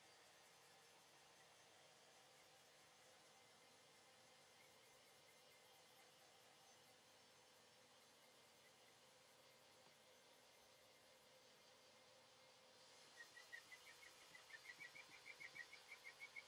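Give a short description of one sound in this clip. A power sander whirs steadily.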